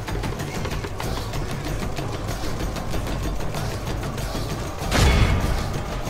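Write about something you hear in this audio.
Weapons clash in a battle with many rapid clanks and thuds.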